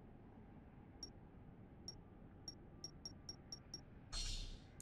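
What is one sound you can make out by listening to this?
Short game menu ticks sound in quick succession.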